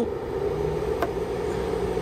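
A button clicks once.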